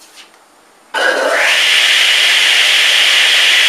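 A table saw starts up and runs with a loud steady whine.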